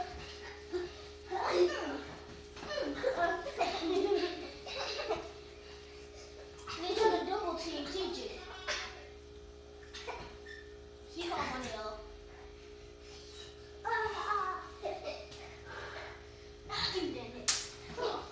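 Feet thump on the floor as children play.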